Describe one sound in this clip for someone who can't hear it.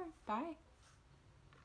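A young woman speaks cheerfully and close up.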